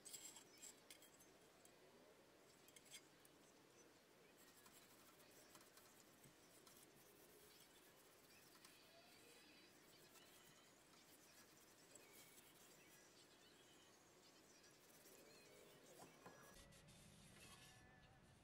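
Small objects knock and clatter on a table.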